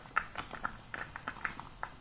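Thick batter pours into bubbling water.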